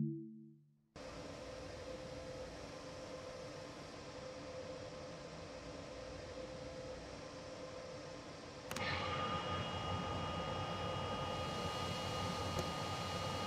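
A train cab's electrical equipment hums steadily.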